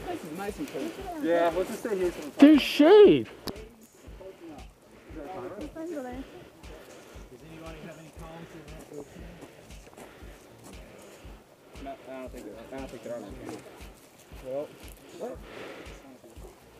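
Men talk outdoors nearby.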